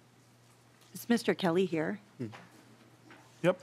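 A second woman speaks into a microphone.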